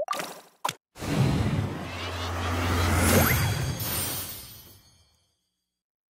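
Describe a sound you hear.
A bright magical whoosh swells and then fades away.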